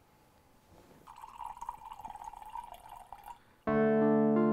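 Liquid pours from a bottle into a glass.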